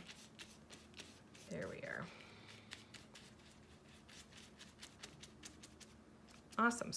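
A paintbrush dabs and scrapes softly against a paper plate.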